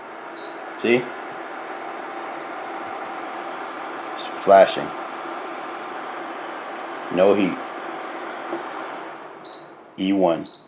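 An induction cooker beeps with a short high tone.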